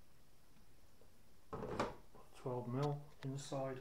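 A metal canister clunks down onto a plate.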